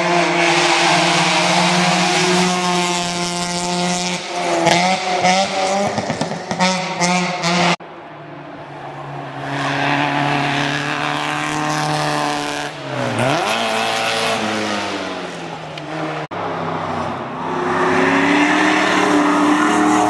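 A racing car speeds past close by with a rushing whoosh.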